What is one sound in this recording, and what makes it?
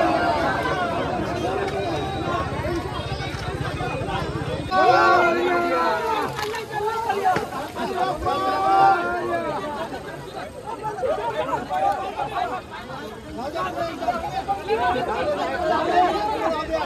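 A crowd of men shouts and chants loudly outdoors.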